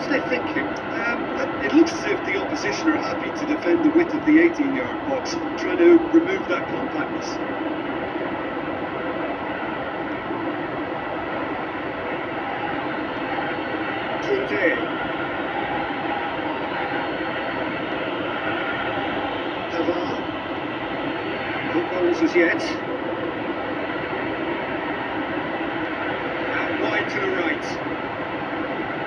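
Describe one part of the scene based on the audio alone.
Crowd noise from a football video game plays steadily through a television speaker.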